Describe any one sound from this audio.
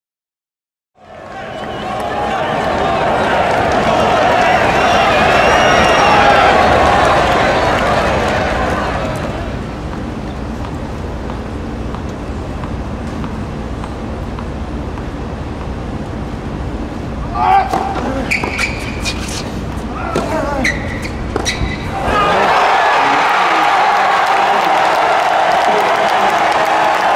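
A large stadium crowd applauds and cheers loudly.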